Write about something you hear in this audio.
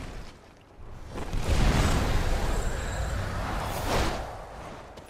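Fire roars in a big burst of flame.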